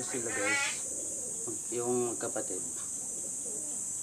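A pigeon flaps its wings briefly.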